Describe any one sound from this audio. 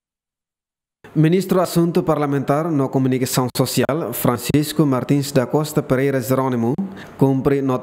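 A man speaks steadily.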